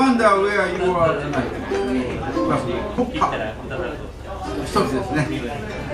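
An accordion plays a melody.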